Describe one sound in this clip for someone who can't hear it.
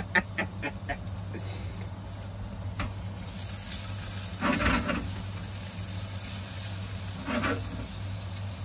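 A metal utensil clinks and scrapes against a pan.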